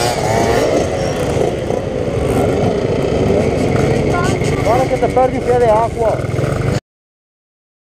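Several small two-stroke dirt bikes buzz along together as a group.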